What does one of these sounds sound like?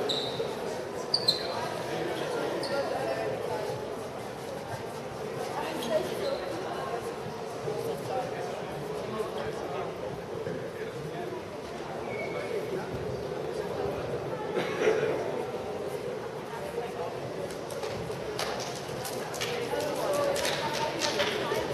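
Young girls chatter and call out in a large echoing hall.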